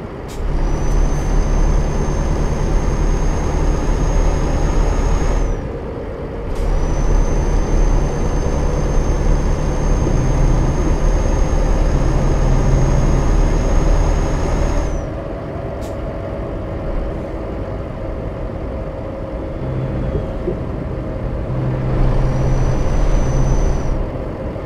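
A truck engine hums steadily as the truck drives along a road.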